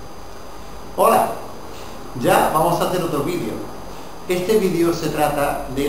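An elderly man speaks clearly and with animation, close by.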